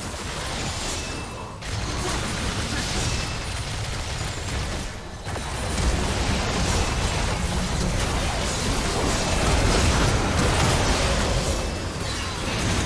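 Spell blasts and magic impacts crackle and boom in a game battle.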